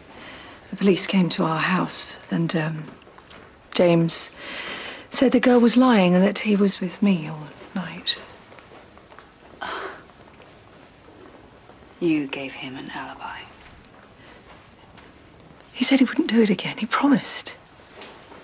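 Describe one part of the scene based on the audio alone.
A woman speaks quietly and earnestly at close range.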